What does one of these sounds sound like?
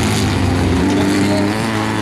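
A Volkswagen Beetle race car's air-cooled flat-four engine roars as the car races along a dirt track.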